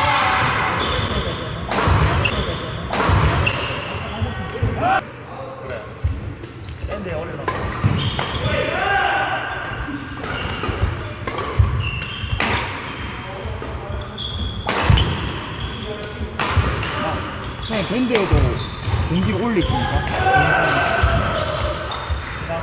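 Badminton rackets smack shuttlecocks with sharp pops in a large echoing hall.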